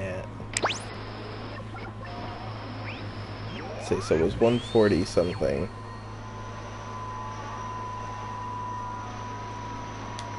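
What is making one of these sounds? A small drone hovers with a steady electronic hum.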